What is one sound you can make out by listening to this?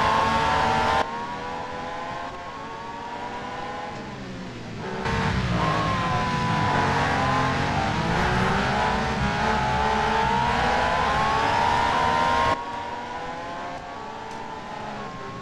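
Racing car engines whine more faintly from a distance.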